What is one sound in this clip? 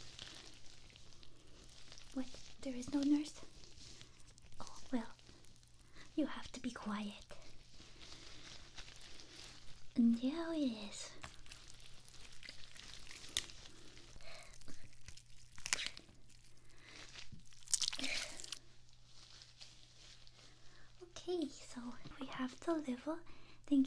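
Gloved hands rustle and crinkle close up.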